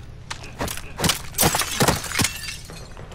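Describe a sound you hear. Glass shatters and tinkles.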